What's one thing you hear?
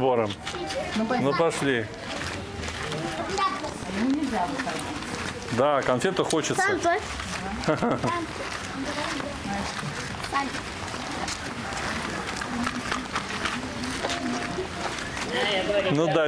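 Children's voices chatter and call out nearby outdoors.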